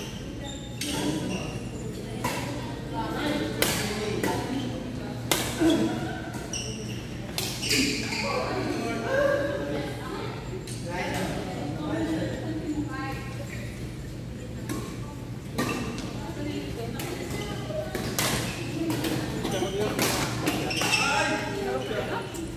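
Badminton rackets smack a shuttlecock back and forth in an echoing hall.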